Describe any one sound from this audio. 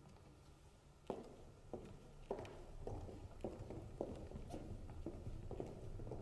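Footsteps thud across a wooden stage.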